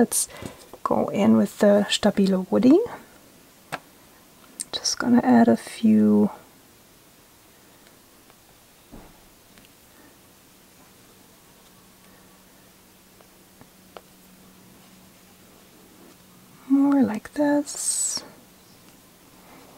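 A pencil taps and scratches softly on paper.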